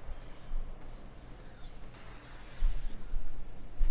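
Footsteps run over grass.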